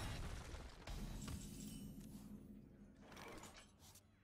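A bright game jingle announces a new turn.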